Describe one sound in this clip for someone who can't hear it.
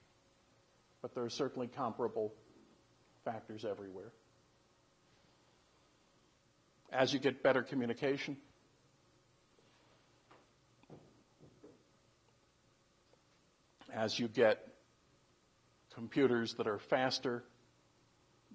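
An elderly man speaks calmly in short phrases with pauses.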